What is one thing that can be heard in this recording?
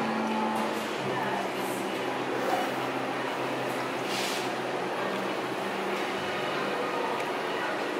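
Liquid pours from a carafe into a plastic jug.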